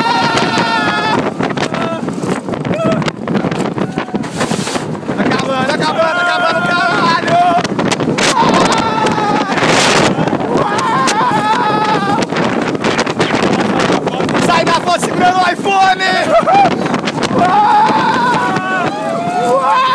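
Riders scream loudly on a roller coaster.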